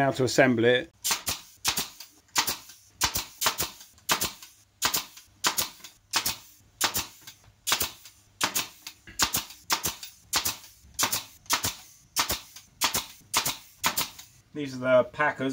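A nail gun fires rapidly and repeatedly, with sharp clacks.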